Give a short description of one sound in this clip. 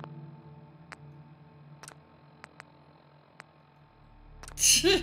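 Short game menu clicks sound one after another.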